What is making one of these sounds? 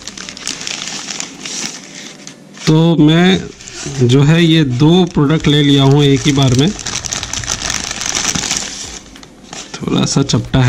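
A plastic mailer bag crinkles and rustles as it is torn open.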